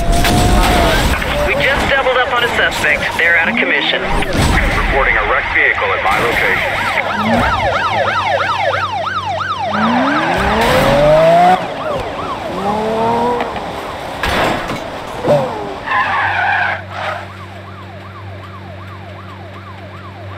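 A sports car engine roars and revs.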